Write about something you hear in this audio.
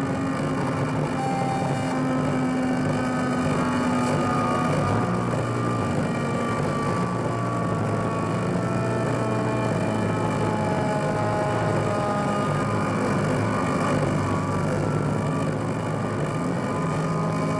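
Dense electronic music with droning, shifting tones plays loudly.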